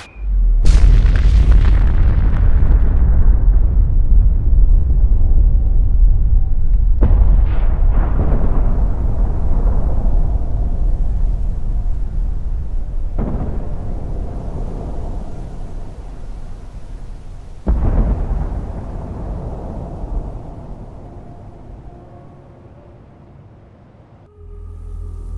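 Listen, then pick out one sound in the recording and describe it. A huge explosion booms and roars with a deep, rolling rumble that slowly fades.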